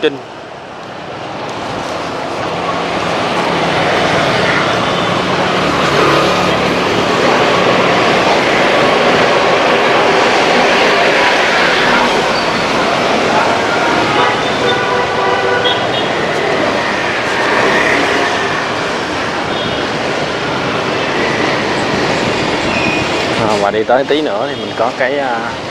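Motorbikes and cars hum and whoosh past on a wet street.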